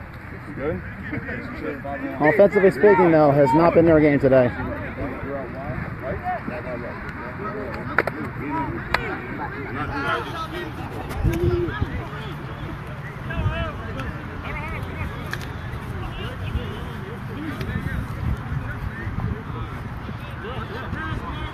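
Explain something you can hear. Several men talk and call out to one another outdoors.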